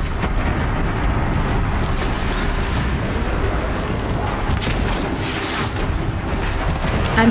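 A huge machine creature stomps and rumbles heavily.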